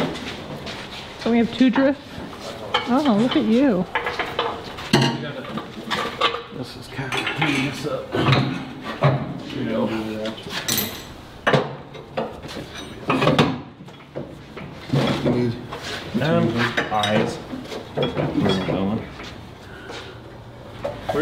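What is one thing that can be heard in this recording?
Metal tools clank against a vehicle's parts.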